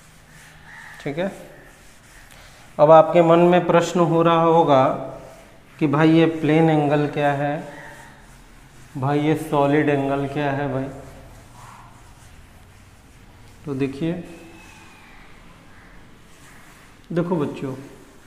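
A man talks calmly and close by, in bursts with pauses.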